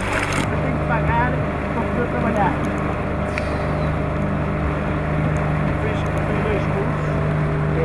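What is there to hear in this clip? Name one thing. A man speaks outdoors.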